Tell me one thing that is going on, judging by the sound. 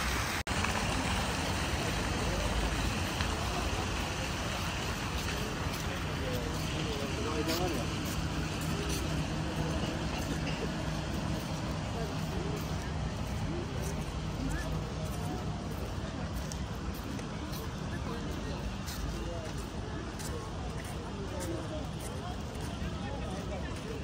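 Voices of people chatter in an open outdoor square.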